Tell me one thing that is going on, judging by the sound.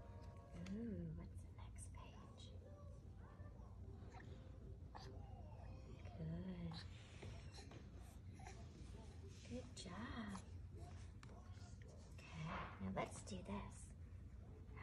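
An infant babbles and coos.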